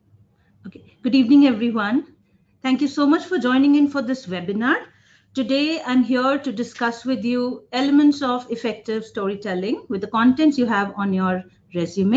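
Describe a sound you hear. A woman talks calmly and clearly into a close microphone, heard over an online call.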